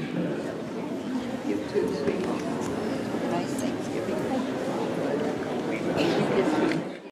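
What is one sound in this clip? A crowd of men and women chatter and mingle in a large echoing hall.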